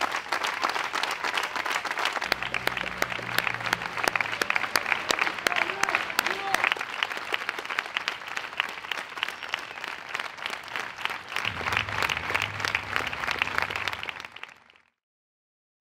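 A large crowd claps steadily outdoors.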